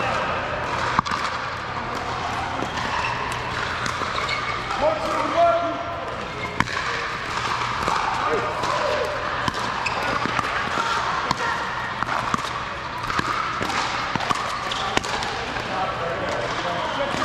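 Paddles strike a plastic ball with sharp pops in an echoing hall.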